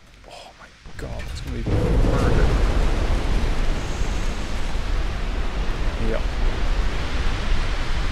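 Heavy shell explosions boom and rumble without pause.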